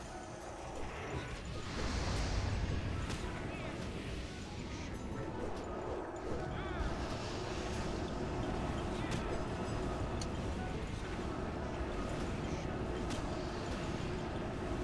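Magic spells blast and crackle in a fierce fantasy battle.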